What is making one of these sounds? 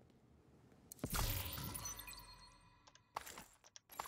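Gear rustles as a soldier crouches and searches.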